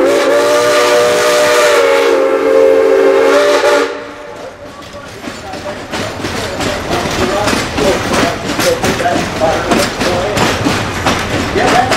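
A train rumbles and clacks along the rails as it passes.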